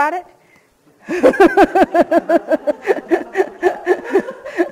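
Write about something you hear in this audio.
A middle-aged woman laughs heartily.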